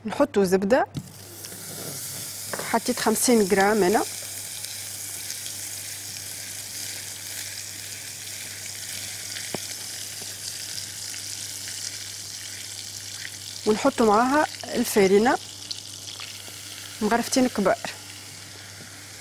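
Water boils and bubbles in a pot.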